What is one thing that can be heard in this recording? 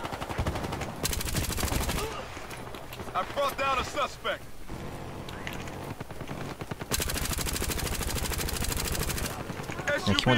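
An assault rifle fires in rapid automatic bursts.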